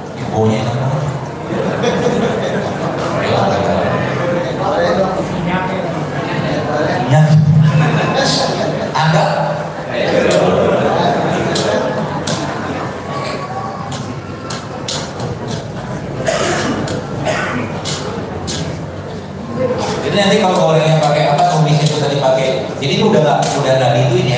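A man talks calmly into a handheld microphone.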